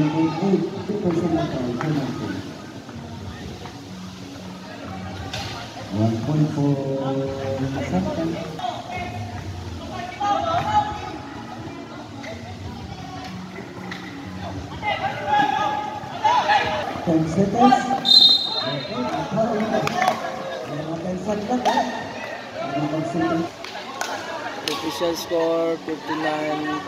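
Young people shout and call out nearby.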